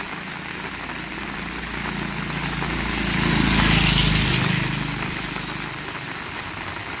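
A vehicle approaches on a wet road and passes close by, its tyres hissing.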